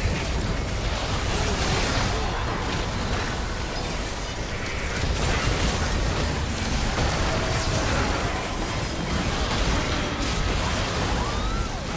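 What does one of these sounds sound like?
Spell effects whoosh, crackle and burst in a busy game fight.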